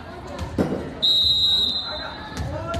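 A whistle blows briefly.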